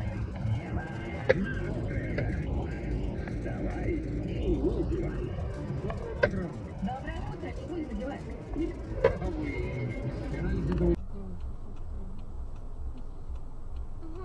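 A car engine rumbles low and steady from inside a moving car.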